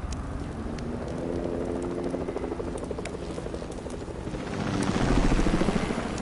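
A helicopter's rotor drones overhead.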